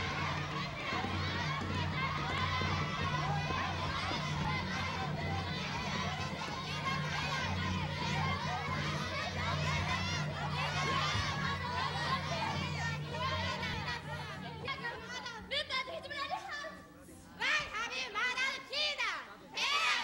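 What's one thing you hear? A young man shouts loudly.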